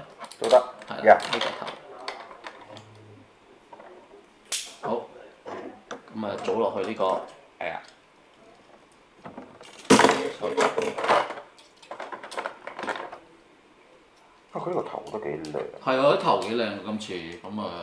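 Plastic toy parts click and snap as they are handled.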